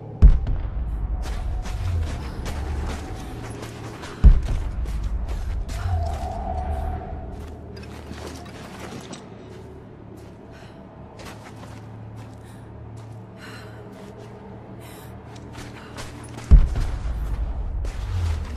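Heavy explosions boom and rumble nearby.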